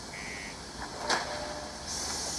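A heavy mechanical door clanks.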